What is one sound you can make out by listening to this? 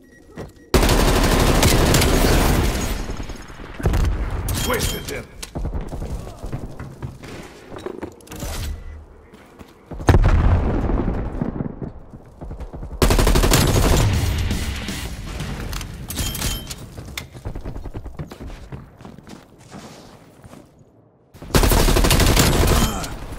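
An assault rifle fires rapid automatic bursts.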